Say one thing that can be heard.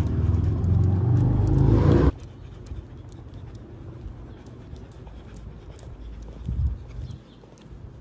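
A dog pants softly.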